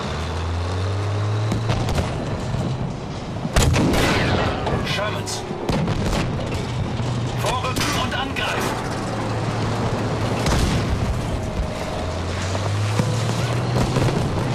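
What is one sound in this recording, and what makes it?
A tank engine rumbles low.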